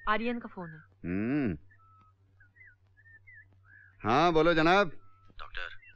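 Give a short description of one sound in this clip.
A man speaks with animation nearby.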